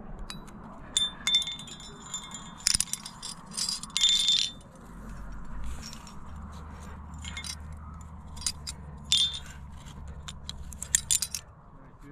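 Metal carabiners clink and jingle.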